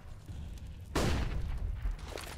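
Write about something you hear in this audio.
A flash grenade bursts with a sharp bang.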